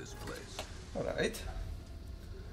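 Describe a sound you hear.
A wooden chest creaks open with a short burst of sound.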